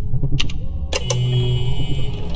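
An electronic keypad beeps.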